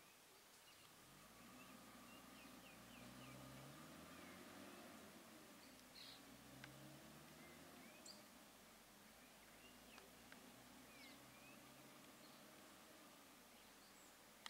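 A truck engine rumbles as the truck slowly pulls away.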